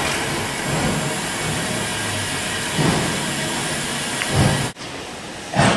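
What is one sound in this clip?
Steam hisses loudly from a steam locomotive close by.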